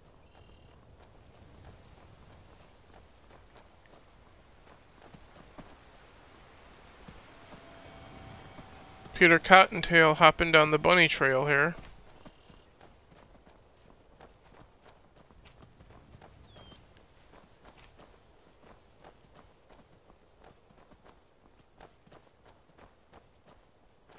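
Footsteps crunch steadily on stone and gravel.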